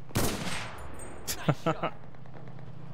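A rifle fires several sharp shots close by.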